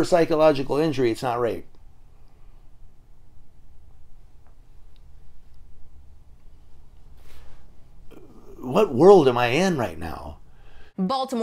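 A middle-aged man speaks with animation, close to a microphone.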